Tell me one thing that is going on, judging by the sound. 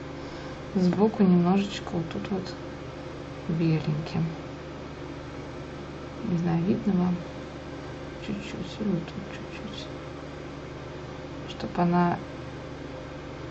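A thin brush strokes softly on paper.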